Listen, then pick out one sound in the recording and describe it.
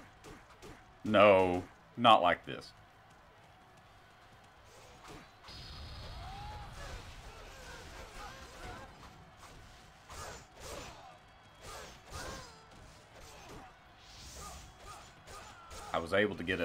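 Swords clash and strike with sharp hits.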